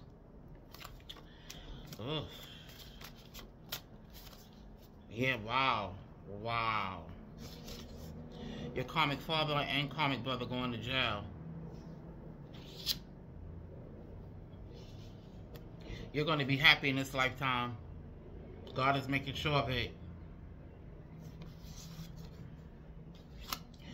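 Paper cards rustle and flick as they are shuffled by hand.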